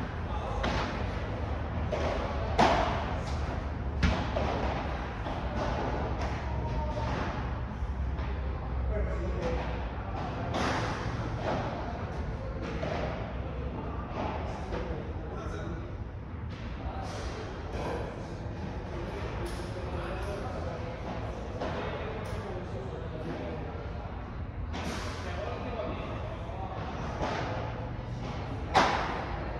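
Padel rackets sharply strike a ball in an echoing indoor hall.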